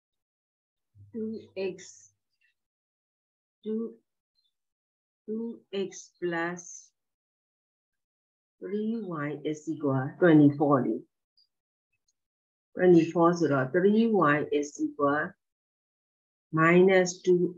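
A middle-aged woman speaks calmly over an online call, in short phrases.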